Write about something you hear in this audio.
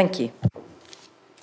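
A woman speaks briefly over a microphone.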